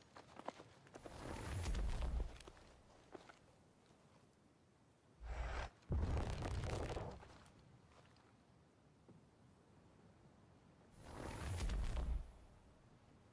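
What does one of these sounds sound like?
Deep whooshing sound effects swell and fade several times.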